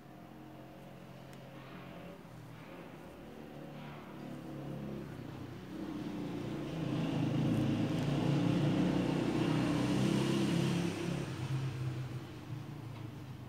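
A crochet hook clicks softly against yarn.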